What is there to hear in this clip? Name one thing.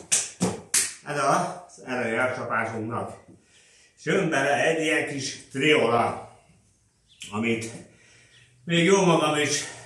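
A man speaks calmly close by, in a slightly echoing room.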